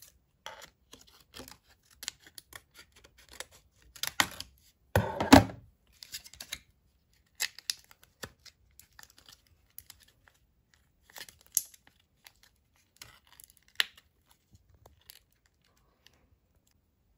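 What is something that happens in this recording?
Small plastic pieces click and tick against each other in fingers.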